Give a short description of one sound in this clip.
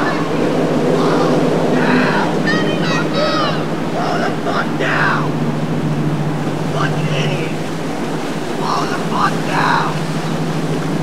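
A man shouts angrily over the engine noise.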